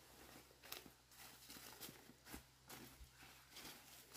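A rope rustles and swishes as it is handled.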